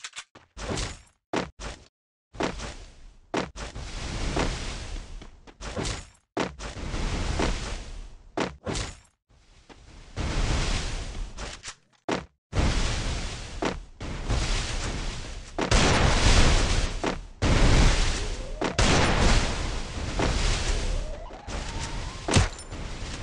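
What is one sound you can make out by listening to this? Game sound effects burst and rumble as barriers slam down in rapid succession.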